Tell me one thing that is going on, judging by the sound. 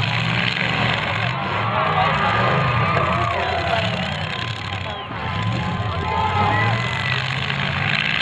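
Car engines roar and rev loudly outdoors.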